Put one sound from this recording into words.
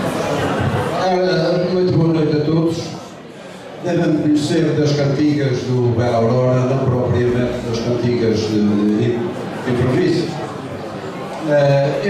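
An elderly man speaks with animation into a microphone, heard through loudspeakers.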